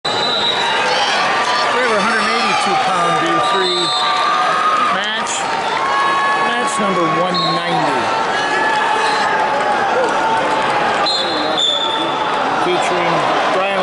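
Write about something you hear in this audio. A large crowd chatters and cheers in a big echoing arena.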